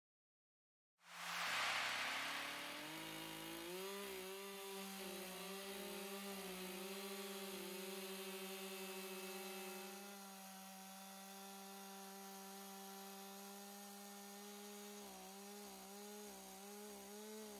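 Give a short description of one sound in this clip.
A chainsaw roars steadily as it cuts into a log.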